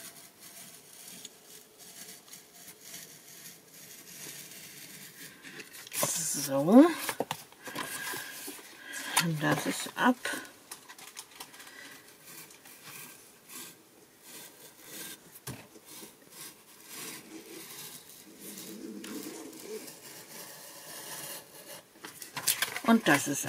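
A blade scratches along cardboard.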